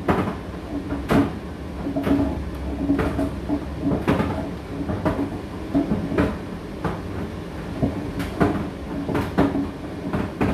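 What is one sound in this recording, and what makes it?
A condenser tumble dryer hums as its drum turns.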